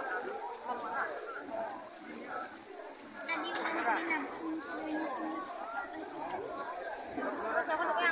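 A large crowd of people shouts and chatters outdoors.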